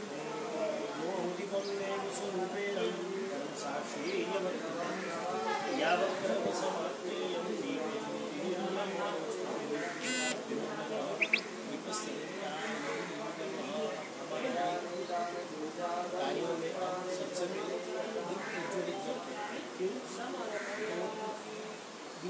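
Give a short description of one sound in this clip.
A man chants steadily nearby.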